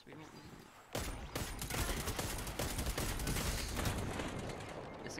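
A rifle fires single loud shots.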